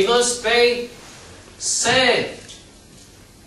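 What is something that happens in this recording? A middle-aged man speaks emphatically into a microphone.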